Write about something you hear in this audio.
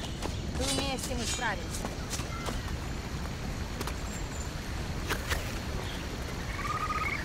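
Footsteps run over soft ground.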